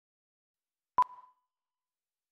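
A single short, high electronic beep sounds.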